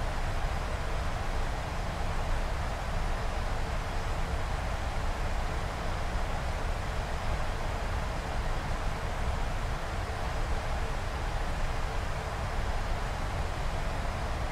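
Wind rushes past the cockpit windows.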